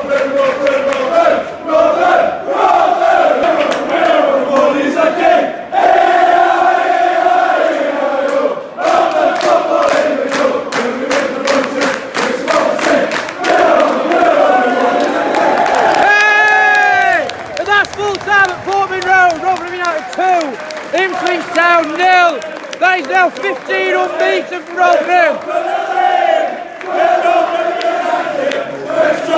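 A large crowd of men sings and chants loudly in an echoing stadium.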